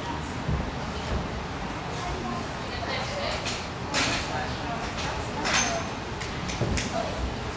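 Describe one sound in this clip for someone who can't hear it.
Feet thump on a wooden balance beam.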